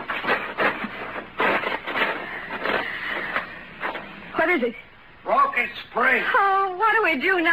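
A woman sobs and wails in anguish, heard through an old, narrow-sounding microphone.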